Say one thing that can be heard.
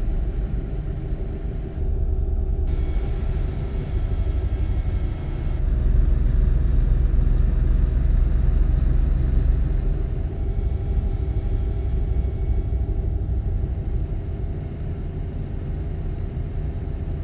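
A truck engine drones steadily at cruising speed.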